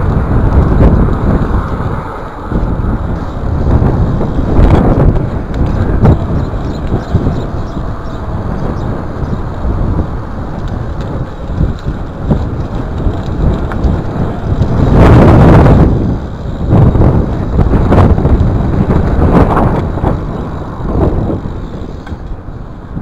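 A BMX bike's tyres roll and rattle over brick paving.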